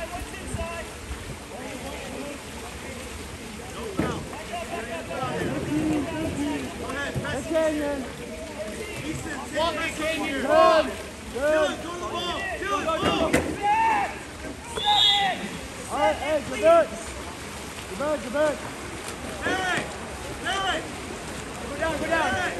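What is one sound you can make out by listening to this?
Spectators shout and cheer from nearby, outdoors.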